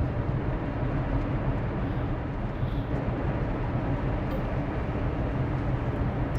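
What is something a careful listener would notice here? A truck engine rumbles steadily, low and close.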